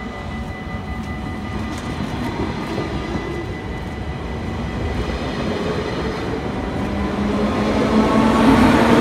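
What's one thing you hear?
A passenger train rumbles past close by, wheels clattering on the rails.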